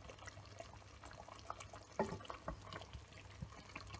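Metal tongs clink against a pot.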